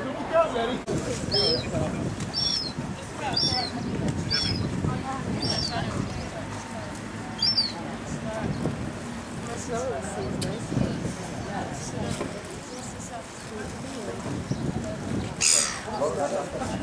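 A group of adults chats some way off outdoors.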